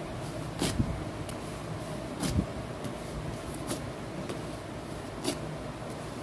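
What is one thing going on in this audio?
Paper crinkles and rustles as it is pressed and rubbed onto skin.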